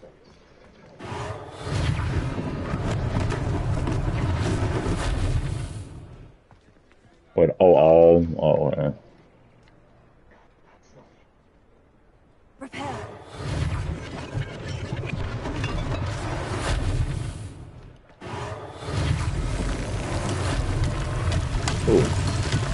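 Spells crackle and whoosh in loud bursts.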